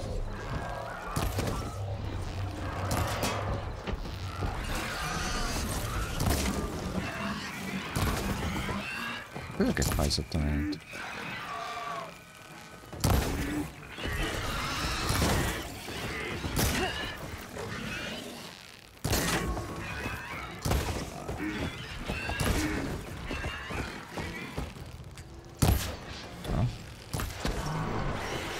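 Arrows whoosh and thud into a machine creature.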